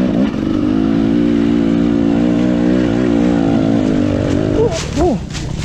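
A dirt bike engine revs loudly up close.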